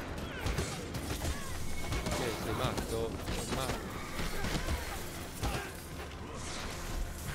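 Blades clash and blows land in a fierce fight.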